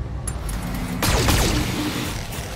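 Laser weapons fire in loud, buzzing bursts.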